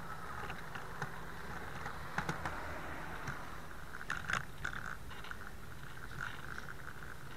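A bicycle rattles and clicks over the road.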